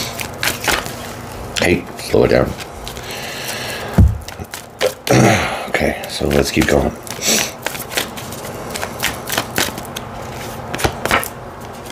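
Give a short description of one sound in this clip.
Playing cards riffle and snap as they are shuffled.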